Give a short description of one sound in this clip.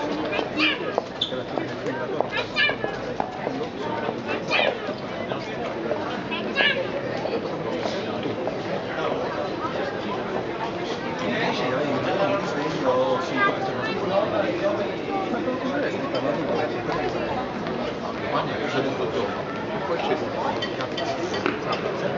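A crowd of people chatters outdoors at a distance.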